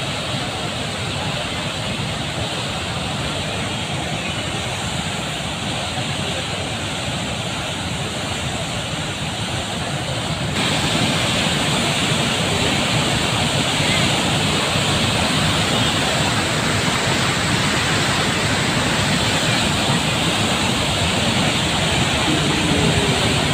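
Floodwater roars and churns loudly and steadily, close by.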